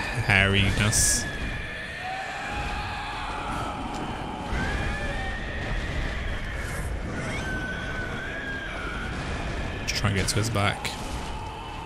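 Heavy blows strike and thud.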